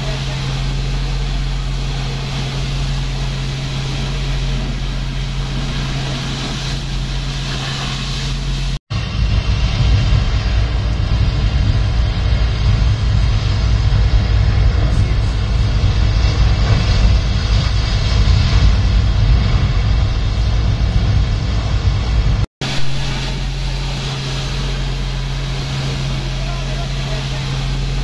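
A large fire roars with a deep, steady rumble.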